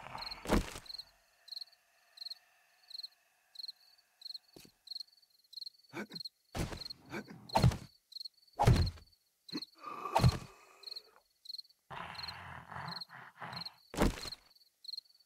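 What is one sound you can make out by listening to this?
Wooden blocks knock sharply as they are placed.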